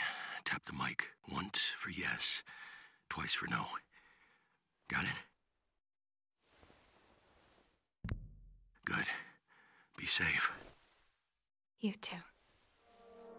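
A man speaks calmly and close up.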